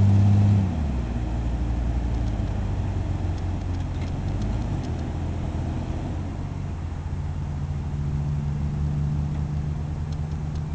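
An engine revs and rumbles steadily.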